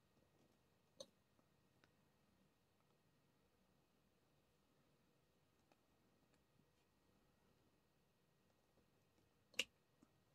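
A pen tool softly taps and clicks against a plastic board.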